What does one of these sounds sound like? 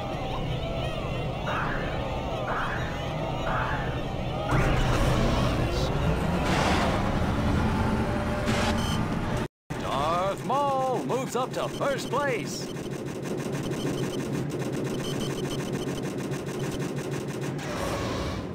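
Racing pod engines roar and whine loudly.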